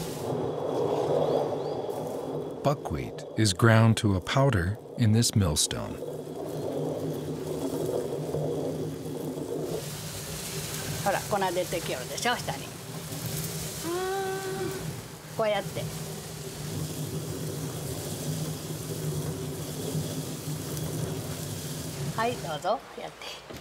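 A stone hand mill grinds seeds with a low, steady rumble.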